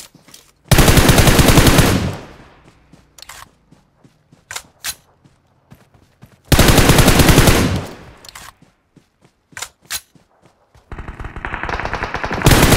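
Rapid gunfire rattles in loud bursts, then echoes away.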